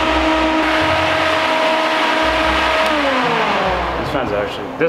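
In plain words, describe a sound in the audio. An electric fan motor hums steadily, then winds down.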